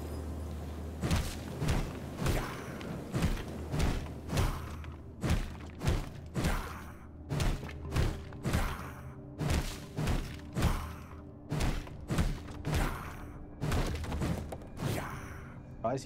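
A pickaxe strikes stone in quick, regular blows.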